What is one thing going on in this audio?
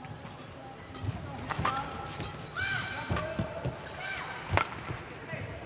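A shuttlecock is struck sharply back and forth with rackets.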